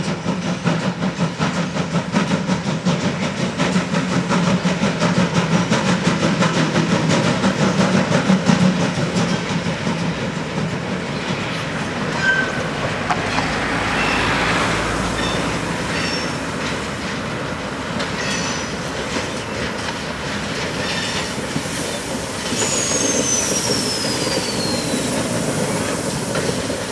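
A steam locomotive chuffs rhythmically as it hauls a freight train.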